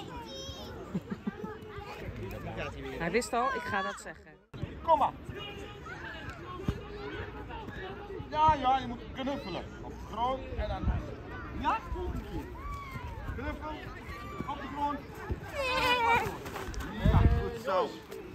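Young children chatter and call out outdoors.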